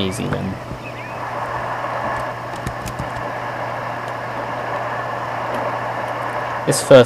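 A waterfall rushes and splashes.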